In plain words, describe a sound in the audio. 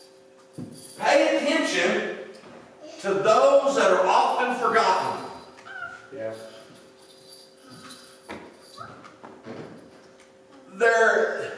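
A middle-aged man speaks into a microphone in an echoing hall, pausing between phrases.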